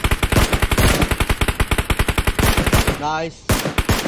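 A sniper rifle fires sharp shots.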